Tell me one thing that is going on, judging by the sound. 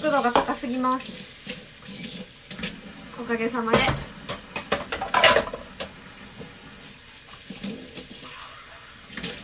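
Small items click and rustle as a young woman handles them.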